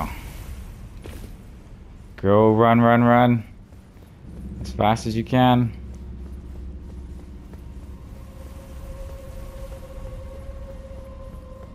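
Footsteps run quickly over stone in a large echoing space.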